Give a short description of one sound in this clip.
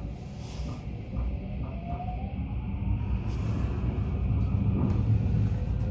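A train motor whines, rising in pitch as the train pulls away.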